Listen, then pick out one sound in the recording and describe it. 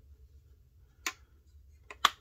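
A small plastic toy car door clicks shut.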